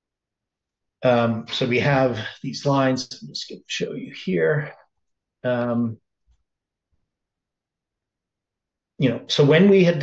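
An older man speaks calmly and closely into a microphone, in bursts with pauses.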